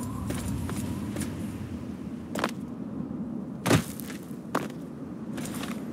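Footsteps crunch over loose gravel and rubble.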